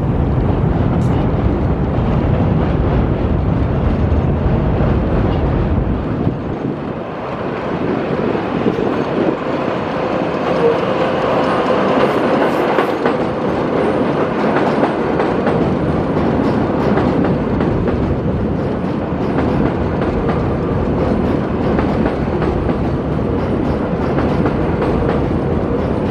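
A subway train rumbles along an elevated track, growing louder as it approaches and roars past close by.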